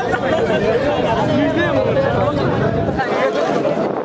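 A large crowd of young men cheers and shouts loudly outdoors.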